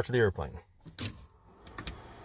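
A switch clicks.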